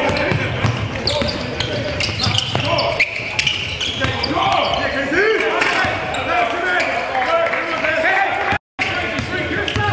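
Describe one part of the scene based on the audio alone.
A basketball bounces on the floor in a large echoing gym.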